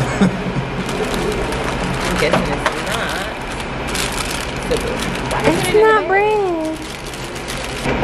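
Paper bags crinkle and rustle close by.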